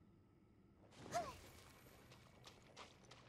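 A crackling electric zap bursts out.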